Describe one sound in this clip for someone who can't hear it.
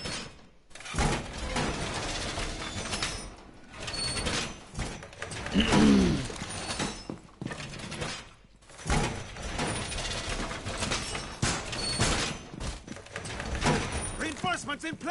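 Metal panels clank and rattle as they are slammed into place.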